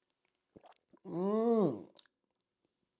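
A man lets out a long, pained groan close by.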